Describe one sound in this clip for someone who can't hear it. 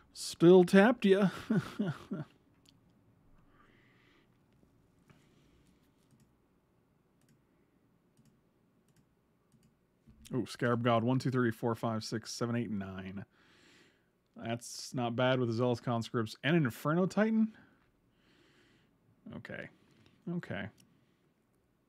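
A middle-aged man talks with animation into a close microphone, pausing between phrases.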